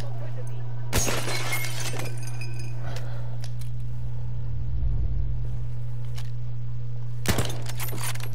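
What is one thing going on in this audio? A rifle fires a loud shot that rings out.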